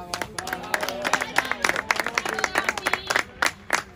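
Hands slap together in a high five.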